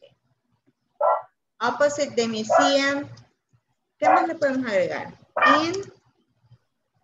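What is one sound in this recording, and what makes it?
A woman speaks slowly and clearly over an online call, as if dictating.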